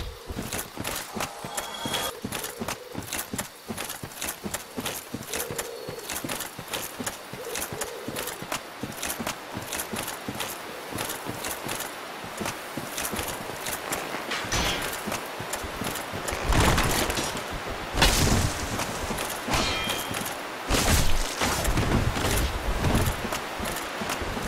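Armored footsteps run quickly over soft ground.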